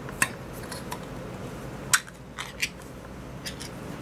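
A metal can lid clicks and scrapes as it is pried open.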